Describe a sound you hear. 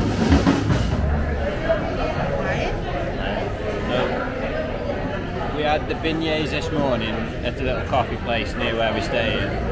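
A man talks calmly and close up.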